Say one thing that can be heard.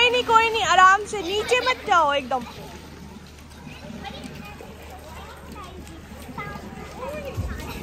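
Water splashes softly around a child wading.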